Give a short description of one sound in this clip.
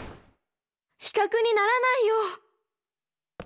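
A second young boy answers cheerfully.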